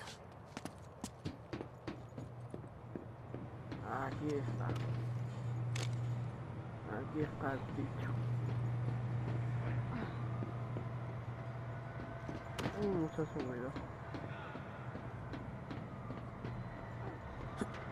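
Footsteps clang on a metal roof.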